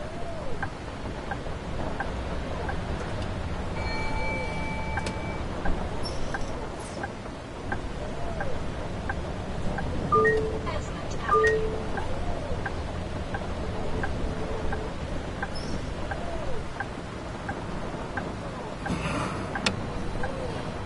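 Rain patters on a bus windscreen.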